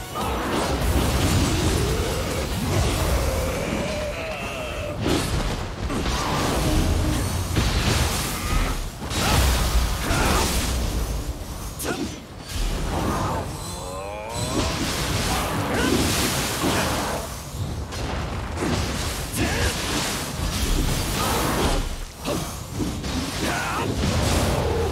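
Magic bursts crackle and whoosh.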